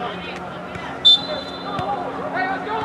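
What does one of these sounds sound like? A referee's whistle blows one short sharp blast.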